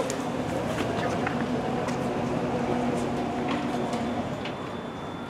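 A vehicle engine idles nearby with a low, steady hum.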